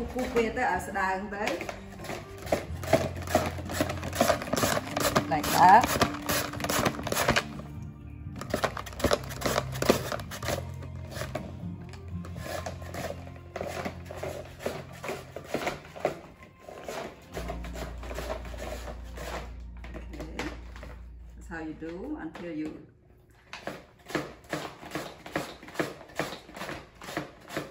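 A mango rasps rapidly against a grater.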